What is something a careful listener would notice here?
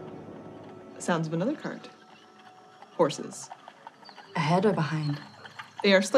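A young woman speaks expressively into a microphone, in short bursts.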